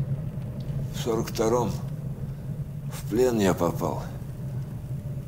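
An elderly man speaks hoarsely, close by.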